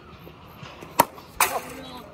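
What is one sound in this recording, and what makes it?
A bat sharply cracks against a ball.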